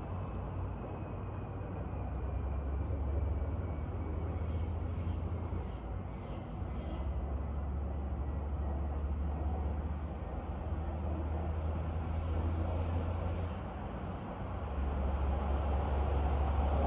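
Wind rustles through the leaves of tall trees outdoors.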